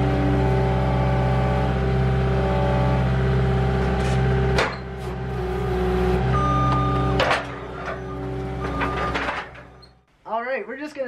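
A skid steer loader's diesel engine runs loudly and steadily up close.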